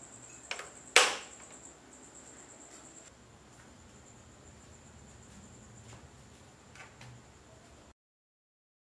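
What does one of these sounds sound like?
A small electric fan whirs softly.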